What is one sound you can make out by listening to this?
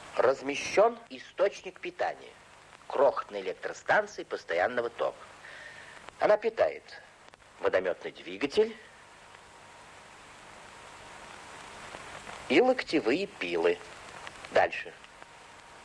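A middle-aged man speaks calmly and firmly, close by.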